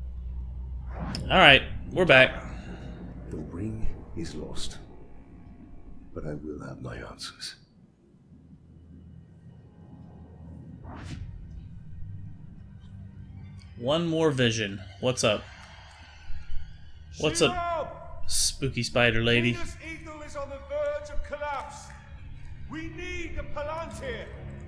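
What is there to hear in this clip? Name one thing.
A man speaks in a low, grave voice, close by.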